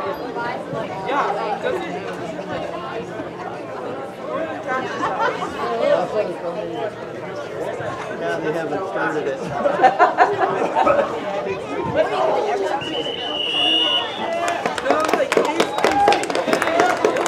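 A crowd of spectators chatters nearby throughout.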